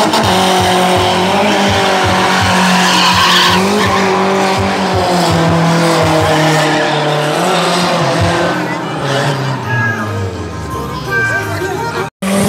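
Tyres squeal and screech on asphalt as a car slides sideways.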